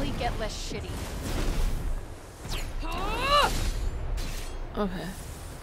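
Heavy blows thud in a fight.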